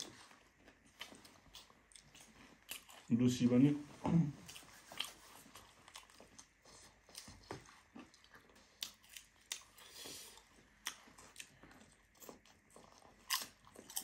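Young men crunch on crisp fried chips.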